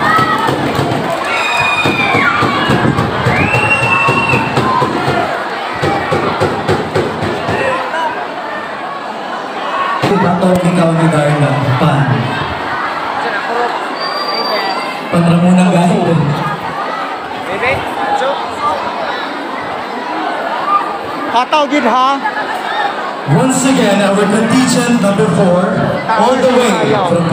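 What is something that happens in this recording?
A large crowd cheers and chatters loudly in an open, echoing space.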